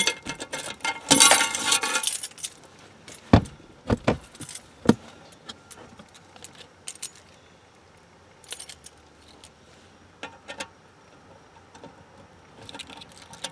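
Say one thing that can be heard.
Keys jingle.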